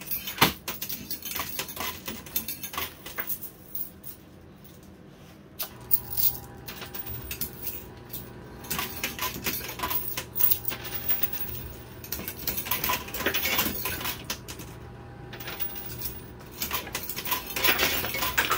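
Metal coins clink and clatter as they drop and slide onto a pile of coins.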